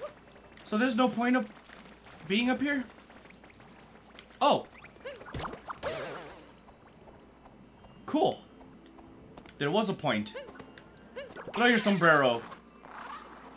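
Playful game sound effects ring out as a cartoon character jumps.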